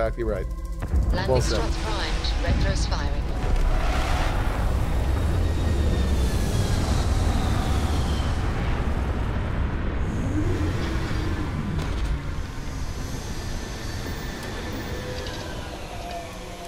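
A spaceship's engines roar as it descends and lands.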